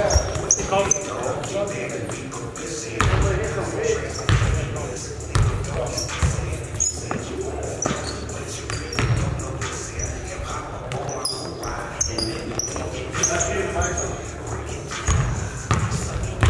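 Young men call out to each other during a game.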